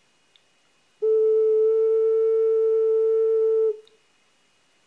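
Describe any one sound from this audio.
An ocarina plays a single steady, clear note close by.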